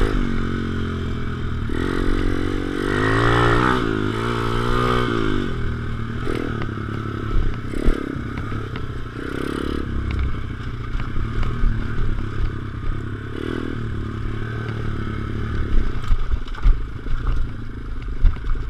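Tyres bump and rattle over a rough dirt track.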